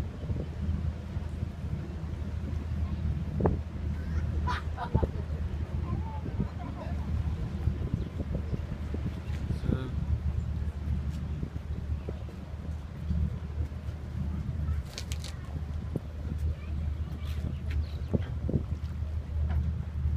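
Water churns and splashes against a boat's hull.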